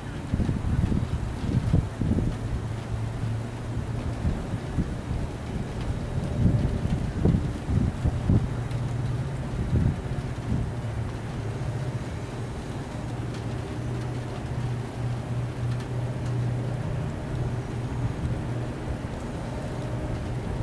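Strong wind gusts buffet and rumble outdoors.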